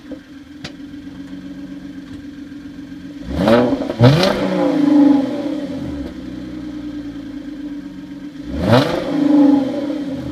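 A car engine idles with a deep, steady rumble close by.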